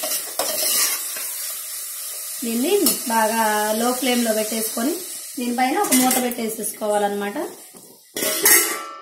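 Food sizzles in a hot pot.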